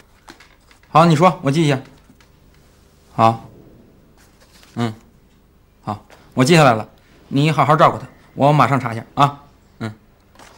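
A young man speaks calmly into a phone handset.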